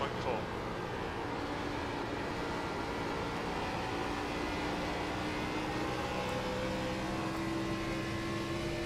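A race car engine roars at high, steady revs.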